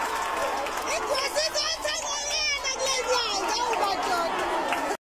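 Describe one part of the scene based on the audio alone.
Children whoop and scream with high voices.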